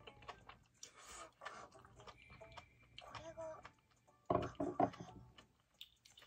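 A young woman chews food noisily up close.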